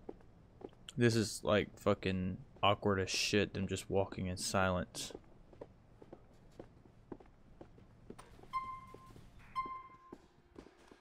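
Footsteps tap steadily.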